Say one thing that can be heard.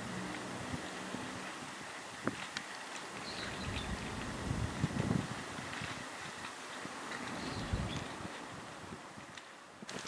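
Water trickles and splashes from a small fountain.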